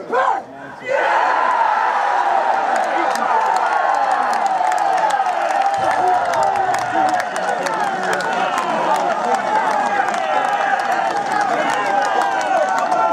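A crowd cheers loudly outdoors.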